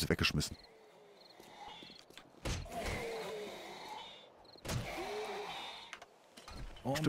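A creature groans and snarls close by.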